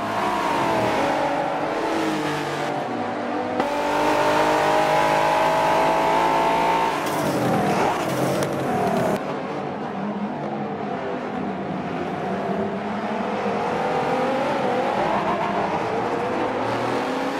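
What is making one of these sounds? Racing car engines roar at high revs.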